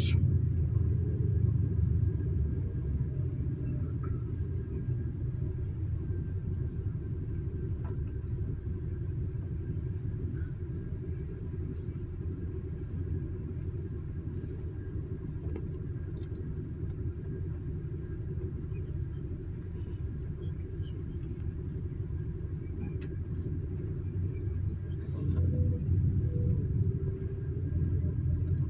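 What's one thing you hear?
A vehicle rumbles low and steady while driving.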